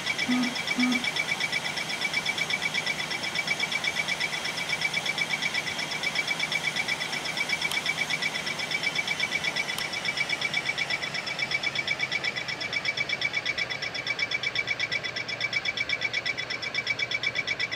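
An alarm beeps rapidly and repeatedly.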